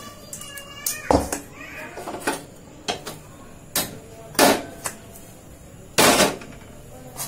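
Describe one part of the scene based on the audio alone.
A metal bowl clanks and scrapes against a hard surface.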